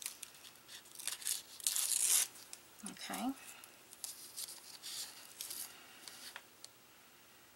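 Tissue paper crinkles and rustles under fingers.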